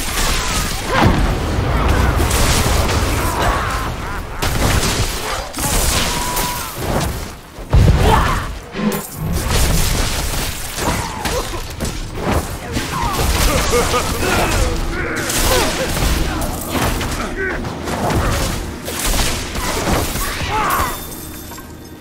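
Fiery blasts boom and whoosh.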